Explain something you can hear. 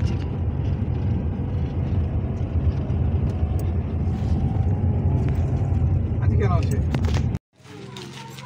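A car rumbles steadily as it drives.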